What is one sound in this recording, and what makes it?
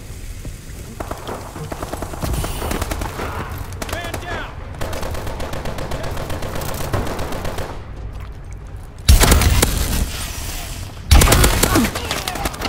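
Rapid gunfire bursts loudly from a rifle.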